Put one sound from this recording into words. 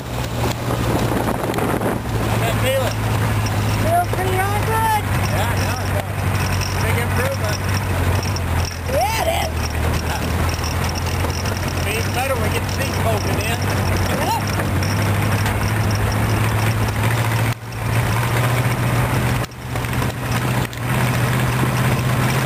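An open vehicle's engine drones steadily close by.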